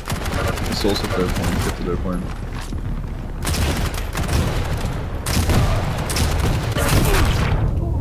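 A rocket launcher fires with loud blasts.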